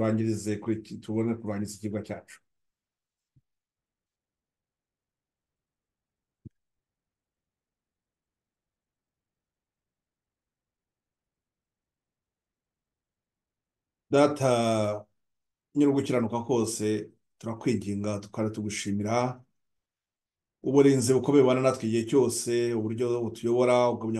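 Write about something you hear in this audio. A man speaks calmly through an online call microphone, with pauses.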